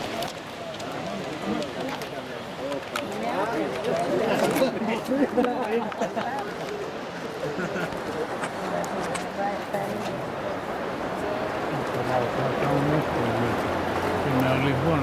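Several men talk nearby outdoors.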